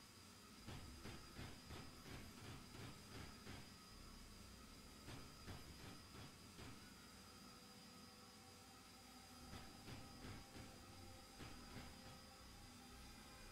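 A laser beam hums steadily.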